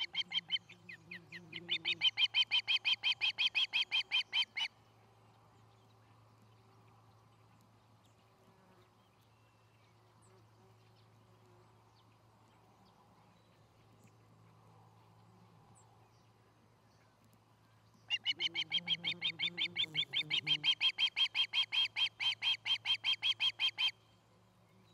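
A bird of prey calls with rapid, shrill, repeated chirps, close by.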